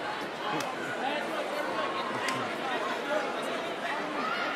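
Hands clap now and then in the crowd.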